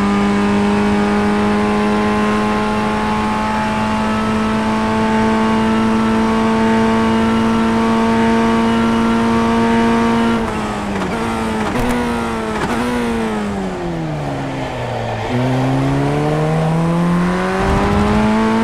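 A racing car engine roars at high revs, drops in pitch through downshifts while braking, then climbs again as the car accelerates.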